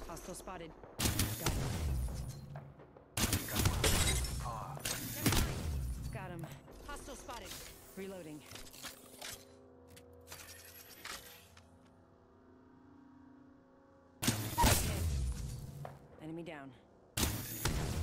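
An energy rifle fires charged beam shots with a heavy boom.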